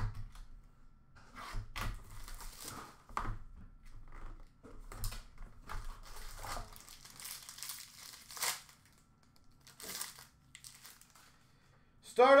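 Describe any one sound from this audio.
Plastic wrappers crinkle and rustle close by.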